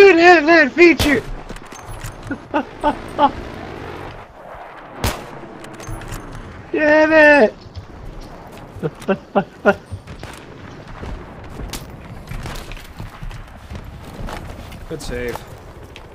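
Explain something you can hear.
A rifle fires sharp shots in bursts.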